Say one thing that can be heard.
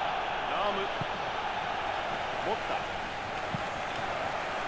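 Football is kicked with dull thuds.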